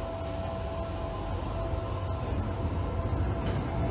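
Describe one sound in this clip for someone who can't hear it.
A train pulls out of a station.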